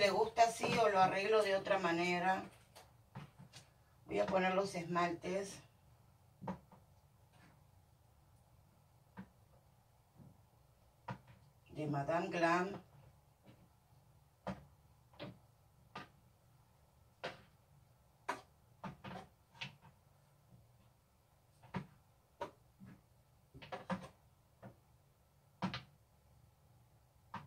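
Small objects clink and tap as they are set down on a shelf.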